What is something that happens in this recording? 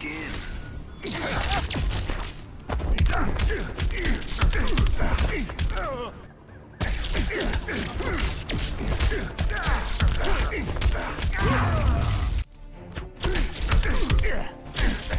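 Punches and kicks thud and smack in a fight.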